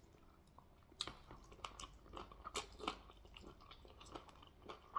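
A man sucks and slurps wetly on meat up close.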